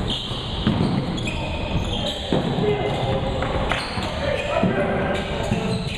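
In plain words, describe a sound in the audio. A basketball bounces on a hardwood floor in an echoing gym.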